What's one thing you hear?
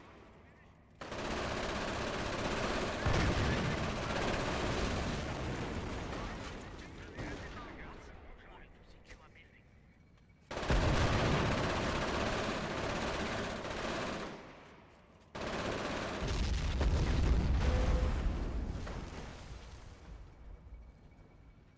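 Heavy explosions boom and rumble in bursts.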